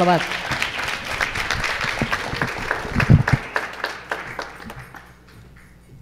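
A crowd applauds in a large room, fading toward the end.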